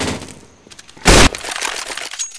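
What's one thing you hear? A gun fires sharp, loud shots.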